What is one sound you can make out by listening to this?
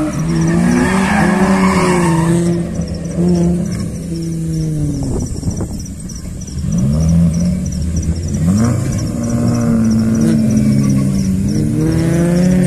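A car engine revs hard and falls, over and over, as the car drifts.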